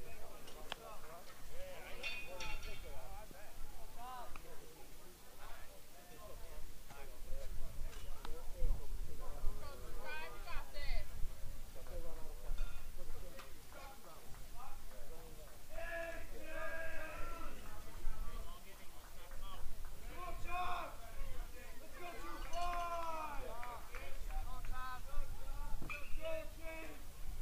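Men talk and call out across an open field at a distance.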